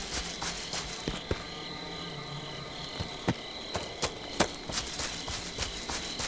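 Footsteps crunch through leaves and brush outdoors.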